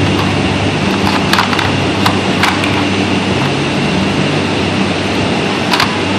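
A dog's nose and paws knock plastic puzzle pieces on a plastic puzzle board.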